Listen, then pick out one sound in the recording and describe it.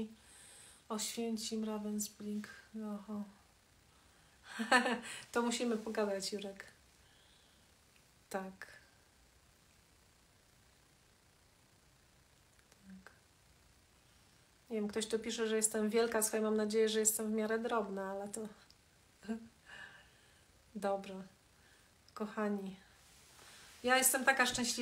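A middle-aged woman speaks calmly and close by, with pauses.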